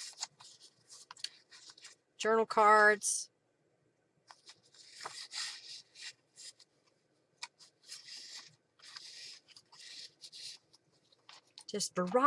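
Paper rustles and slides as pages are handled.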